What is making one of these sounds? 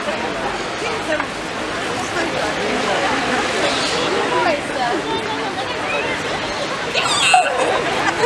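Young girls talk excitedly close by.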